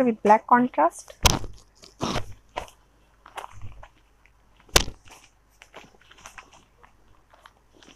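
Cloth rustles as fabric is unfolded and handled.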